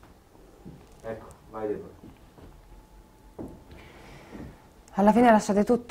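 A middle-aged man speaks slowly and quietly, close by, pausing between words.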